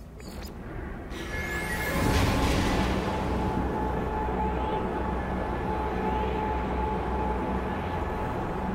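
A teleport whooshes into a loud rushing roar.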